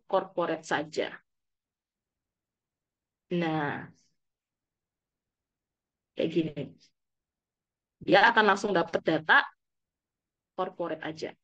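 A young woman speaks calmly into a microphone, in short bursts with pauses.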